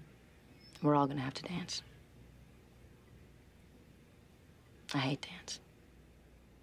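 A young woman speaks calmly in short phrases, close to a microphone.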